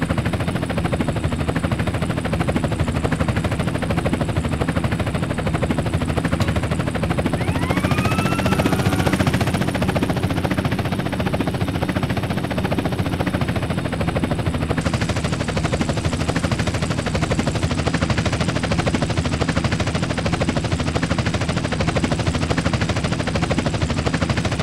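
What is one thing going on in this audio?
Helicopter rotor blades chop steadily and loudly.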